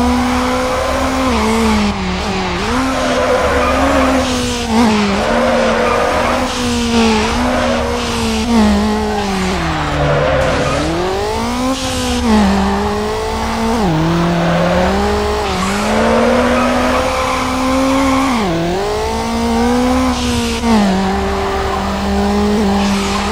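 Tyres screech while a car drifts.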